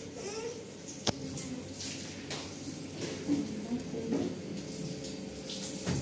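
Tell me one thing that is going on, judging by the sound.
Dishes clink and knock.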